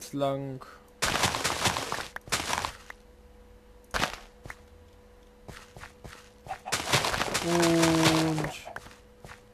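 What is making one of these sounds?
A shovel digs into dirt with short crunching scrapes.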